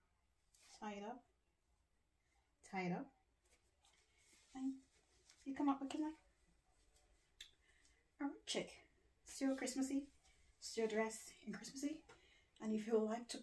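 A young woman talks animatedly and close by, in short bursts.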